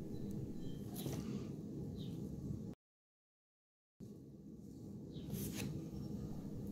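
Fingers tap and click on a smartwatch.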